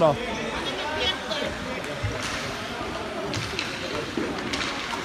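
Skate blades scrape and hiss on the ice.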